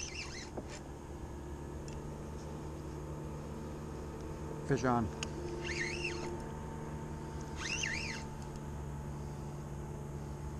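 A fishing reel clicks as its handle is cranked.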